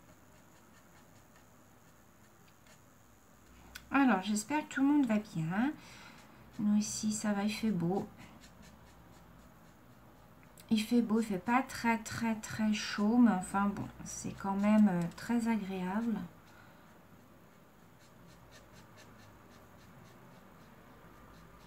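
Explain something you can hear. A marker pen scratches softly across paper.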